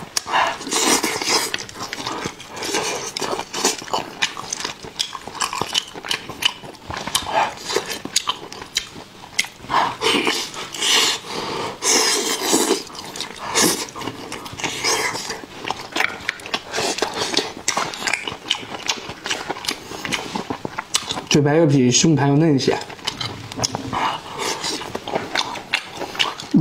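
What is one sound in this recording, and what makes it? A man chews and smacks his lips loudly, close to a microphone.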